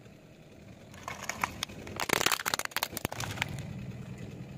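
A plastic toy cracks and crunches under a car tyre.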